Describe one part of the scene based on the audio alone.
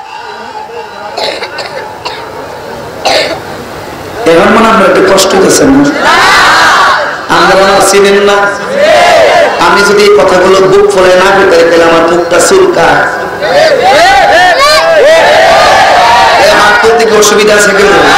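A young man speaks and chants with passion into a microphone, heard through loudspeakers with echo.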